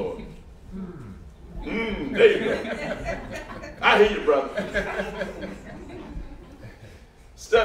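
A man preaches with animation into a microphone, his voice echoing in a large hall.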